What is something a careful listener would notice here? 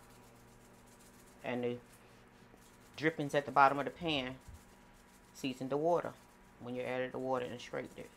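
A spice shaker rattles as seasoning is sprinkled.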